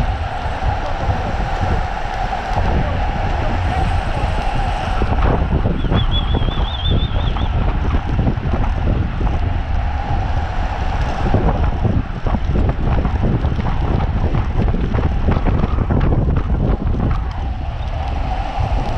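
Wind rushes loudly past outdoors.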